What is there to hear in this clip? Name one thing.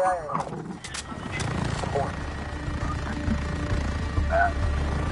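A helicopter's engine roars with a low rumble.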